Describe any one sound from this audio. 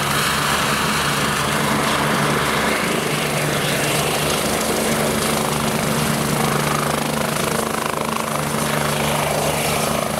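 A helicopter's rotor thumps rapidly and its turbine whines loudly close by.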